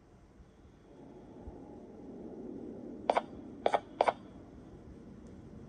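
A low game rumble hums from a tablet speaker.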